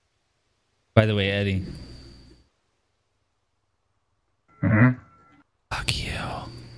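A man speaks with animation close to a microphone, in short bursts.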